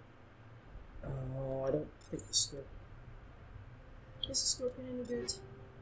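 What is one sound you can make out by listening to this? Electronic menu tones beep and chime.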